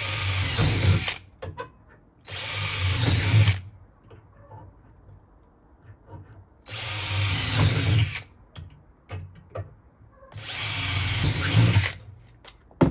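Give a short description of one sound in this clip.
A power drill whirs in short bursts close by.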